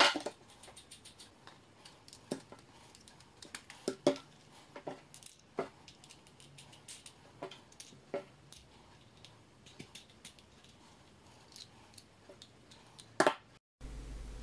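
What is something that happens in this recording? Small wooden and metal pieces click and knock as they are handled.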